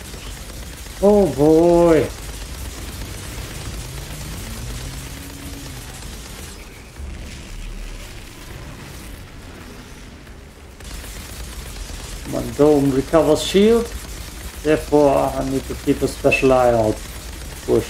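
A young man talks animatedly, close to a microphone.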